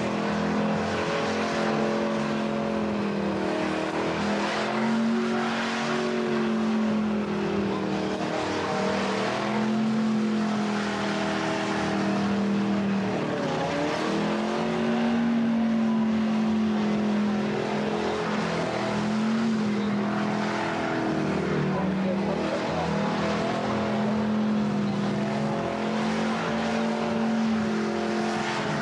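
Car tyres screech as they spin on the tarmac.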